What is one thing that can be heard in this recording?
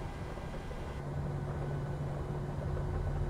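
A jet engine hums and rumbles steadily nearby.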